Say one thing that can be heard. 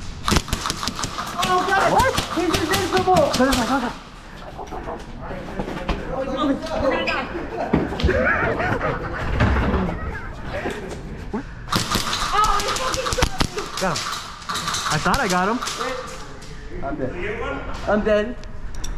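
A young man talks and shouts with animation close by.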